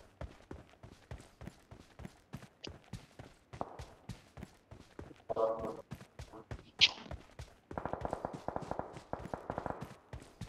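Footsteps thud quickly and steadily on the ground.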